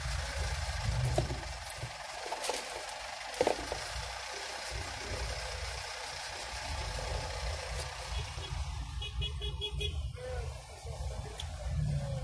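Traffic rumbles in a congested street.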